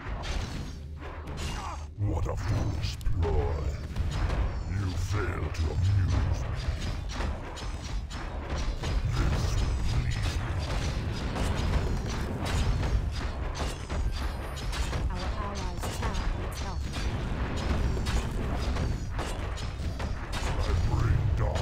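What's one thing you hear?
Weapons clash and strike repeatedly in a fast fight.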